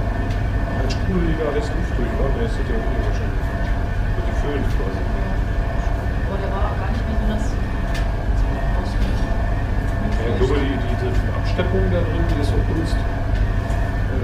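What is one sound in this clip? A man talks quietly nearby.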